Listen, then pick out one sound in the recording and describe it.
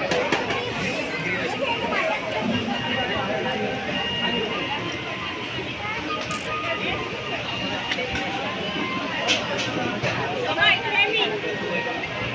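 Metal serving lids and spoons clink.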